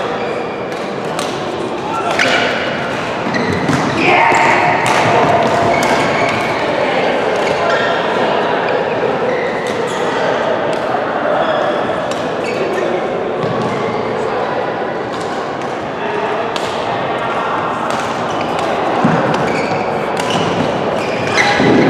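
Sneakers squeak and thud on the court floor.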